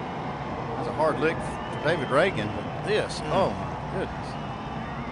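A race car crashes hard into a barrier.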